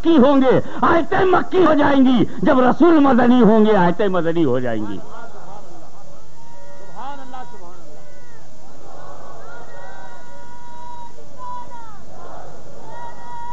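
An elderly man preaches passionately into a microphone, shouting at times.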